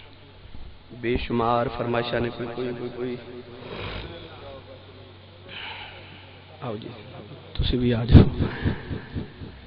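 A man preaches loudly and with feeling into a microphone, heard through a loudspeaker.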